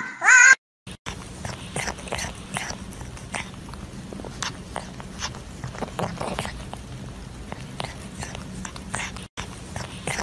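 A cat chews and nibbles with soft, crunchy clicks.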